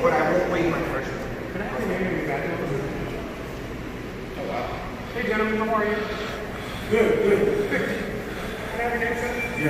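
A man talks with animation close by in an echoing hall.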